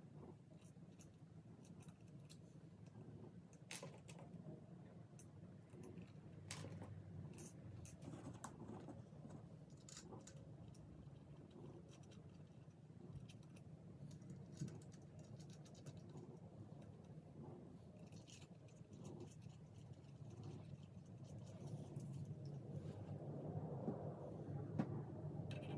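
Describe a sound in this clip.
Small metal parts click and clink as they are screwed onto a guitar body.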